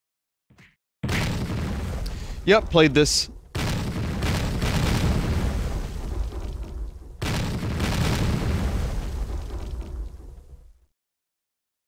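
Grenades explode with loud booming blasts.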